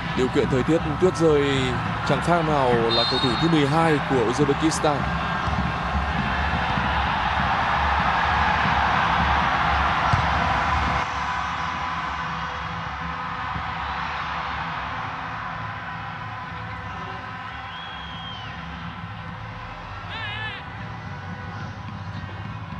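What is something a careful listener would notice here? A large stadium crowd roars and cheers outdoors.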